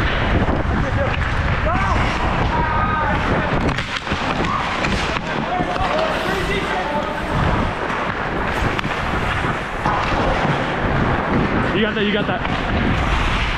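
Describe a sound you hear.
Young players shout and call out across a large echoing rink.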